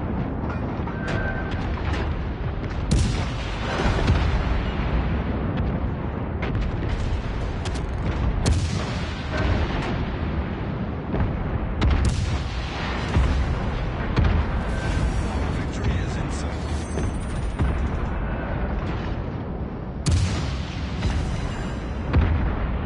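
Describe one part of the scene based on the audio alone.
Heavy guns fire and shells explode with deep booms.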